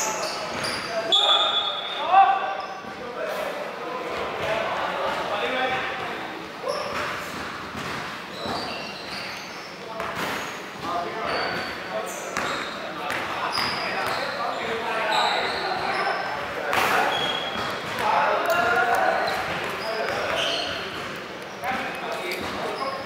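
Sneakers squeak on a hardwood court in a large echoing gym.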